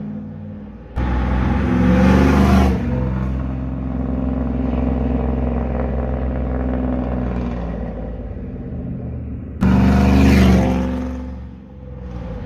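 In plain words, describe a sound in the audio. A pickup truck drives past close by with its engine roaring.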